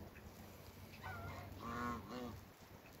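A goose honks nearby.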